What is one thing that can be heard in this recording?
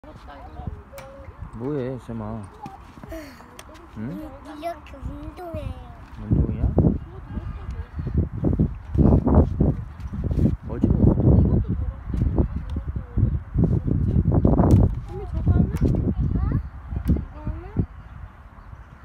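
A young child babbles and chatters up close.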